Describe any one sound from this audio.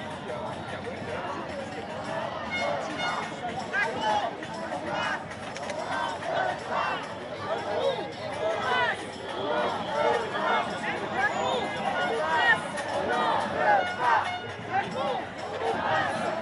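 A large crowd of men and women talks and chants loudly outdoors.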